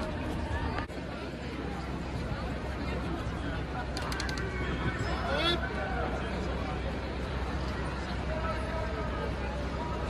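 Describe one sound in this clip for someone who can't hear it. A large crowd of men and women murmur and chatter outdoors.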